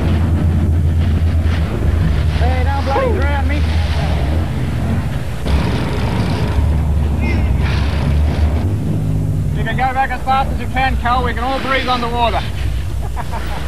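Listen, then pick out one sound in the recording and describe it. Waves rush and splash against a boat's hull.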